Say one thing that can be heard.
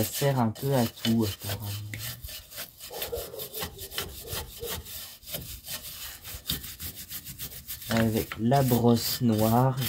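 A metal tool scrapes and clicks against a brake assembly.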